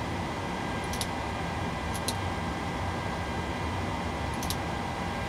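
Cockpit switches click a few times.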